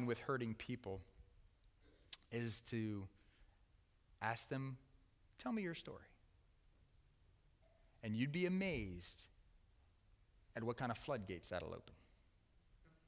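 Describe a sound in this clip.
A man speaks with animation through a microphone, pausing often between phrases.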